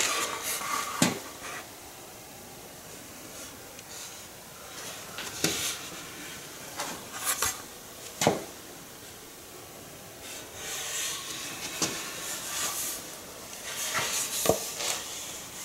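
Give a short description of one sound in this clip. A wooden scoop knocks and rubs against hands as it is turned over.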